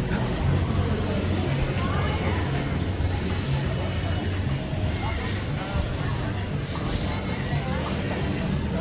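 A crowd of men and women chatters outdoors with many overlapping voices.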